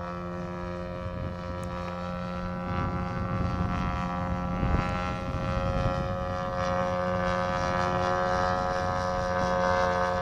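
A model airplane engine whines steadily overhead, rising and falling as the plane passes.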